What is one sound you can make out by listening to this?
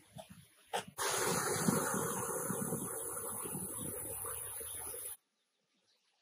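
A small stream trickles over stones into a pool.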